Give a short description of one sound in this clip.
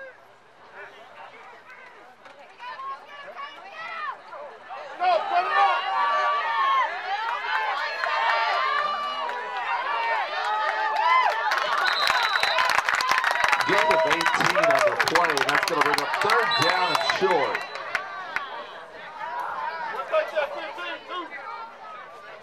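Young girls in the crowd scream and chatter excitedly nearby.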